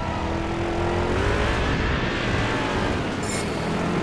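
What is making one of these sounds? Tyres skid and scrape on dirt.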